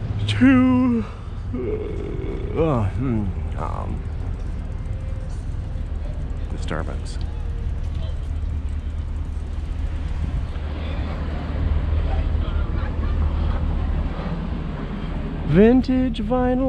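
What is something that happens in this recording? Bicycle tyres roll steadily over pavement.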